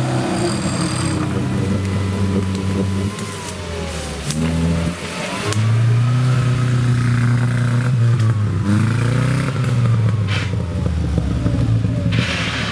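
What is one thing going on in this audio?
An off-road vehicle's engine revs and whines as the vehicle pushes through the brush.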